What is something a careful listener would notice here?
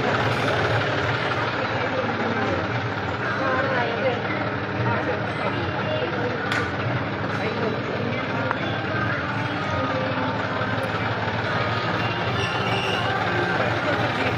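A crowd of men and women talk over one another nearby.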